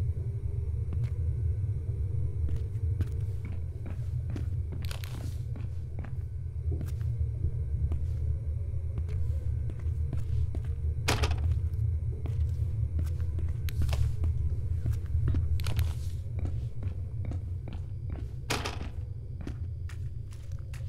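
Footsteps walk steadily on a hard floor.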